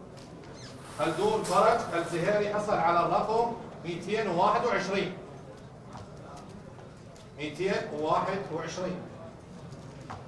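A man reads out clearly through a microphone.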